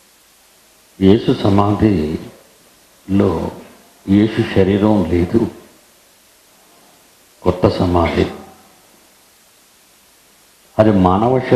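A middle-aged man speaks calmly into a headset microphone, in short phrases with pauses.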